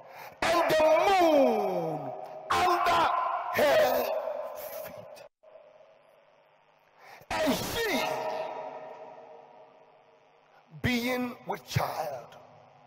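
A man preaches with animation through a microphone and loudspeakers, his voice echoing in a large open space.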